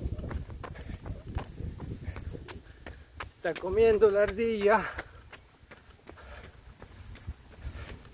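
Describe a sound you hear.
A middle-aged man speaks close by, with animation.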